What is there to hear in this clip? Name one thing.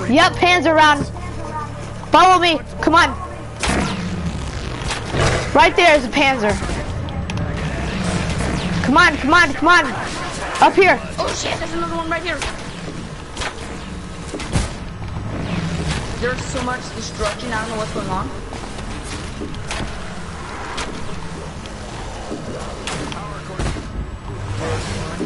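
Gunfire and electric zaps crackle repeatedly.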